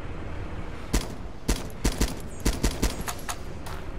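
Rifle shots crack sharply in quick succession.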